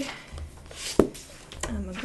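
A book is set down on a table with a soft thump.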